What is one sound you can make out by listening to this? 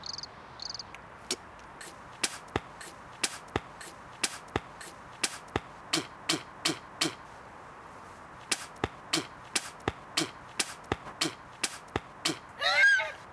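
A teenage boy makes quick rhythmic clicking and popping sounds with his mouth, close by.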